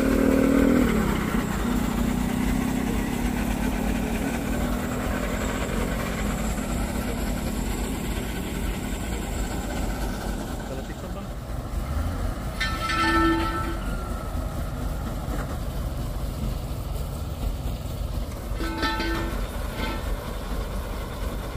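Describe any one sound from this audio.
A heavy truck engine idles with a low, steady rumble outdoors.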